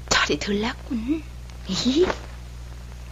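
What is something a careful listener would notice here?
A young woman speaks softly and anxiously nearby.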